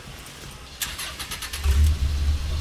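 A jeep's engine cranks with a rapid clatter.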